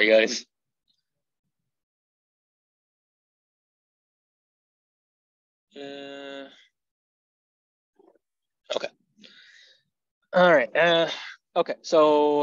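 A young man speaks calmly into a microphone, heard through an online call.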